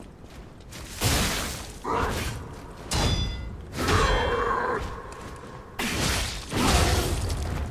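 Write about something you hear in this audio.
Heavy weapon blows land with loud crashing thuds.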